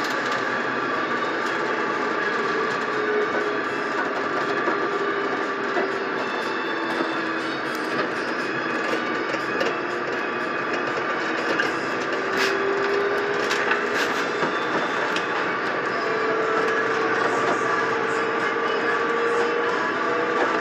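A bus engine hums steadily while driving, with a whine that slowly rises and falls in pitch.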